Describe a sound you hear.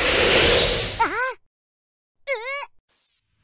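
A small cartoon creature gives high, squeaky chirps.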